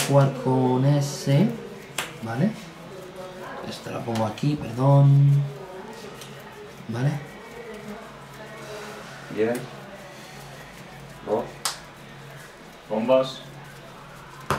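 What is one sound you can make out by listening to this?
A man talks casually up close.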